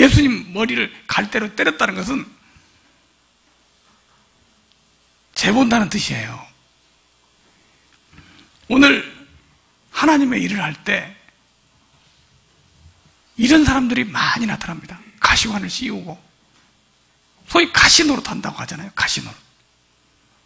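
A middle-aged man speaks calmly into a microphone, in bursts with pauses.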